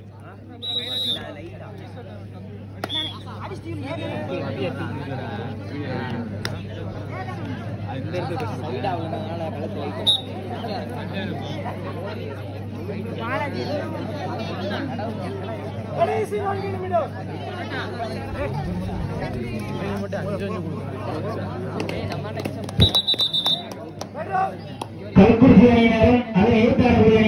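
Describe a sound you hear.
A large outdoor crowd chatters and shouts excitedly.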